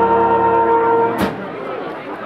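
A brass band plays a long held chord outdoors, then stops.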